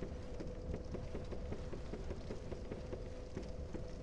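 Hands and feet clank on a metal ladder.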